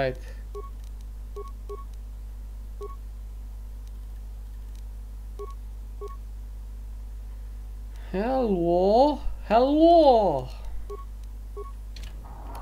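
Short soft beeps sound as menu options are selected.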